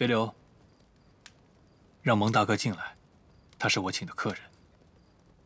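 A young man speaks calmly and briefly, close by.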